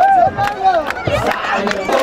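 A group of young men clap their hands in rhythm.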